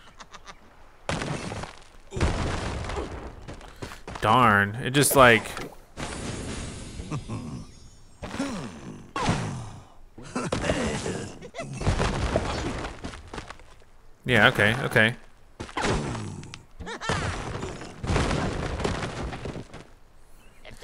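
Wooden and stone blocks crash and tumble down.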